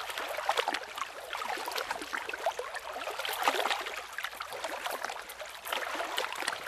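Water splashes as a person wades through it.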